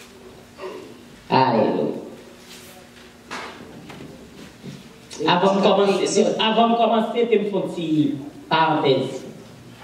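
A woman speaks with feeling into a microphone, heard through a loudspeaker in a reverberant room.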